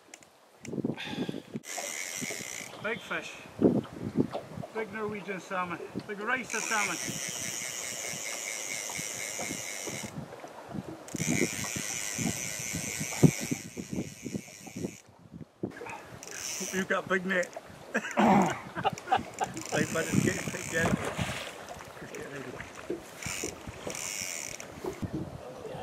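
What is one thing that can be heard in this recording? River water flows and ripples steadily.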